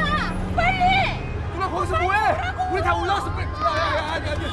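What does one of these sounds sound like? A young woman speaks urgently.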